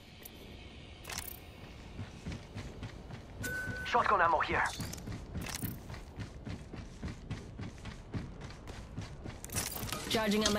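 Quick footsteps patter on a metal floor.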